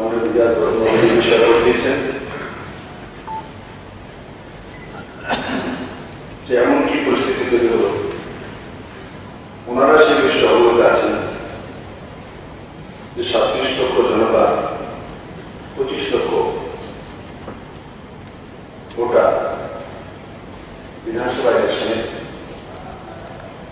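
A man speaks calmly into a microphone in bursts, in a large echoing hall.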